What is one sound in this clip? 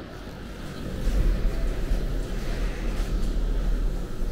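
A revolving door hums as it turns.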